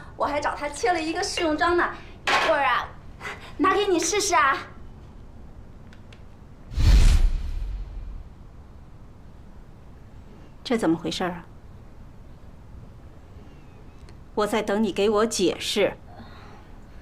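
A middle-aged woman speaks calmly and firmly, close by.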